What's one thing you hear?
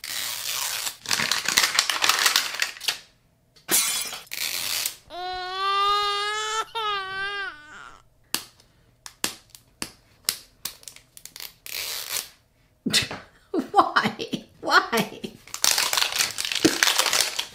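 Paper wrapping crinkles and tears as it is peeled off a ball.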